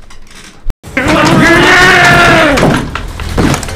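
A man screams.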